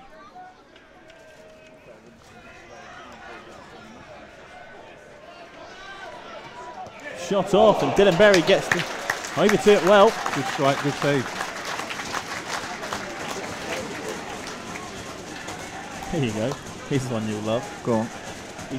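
A crowd of spectators murmurs outdoors.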